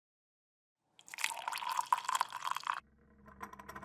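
Tea pours from a kettle into a cup.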